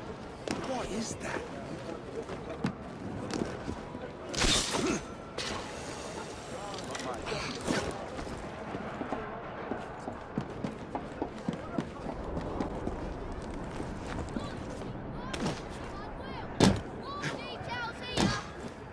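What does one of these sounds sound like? Footsteps patter quickly across rooftops.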